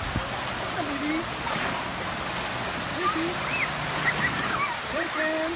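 Children shout and call out in the water at a distance.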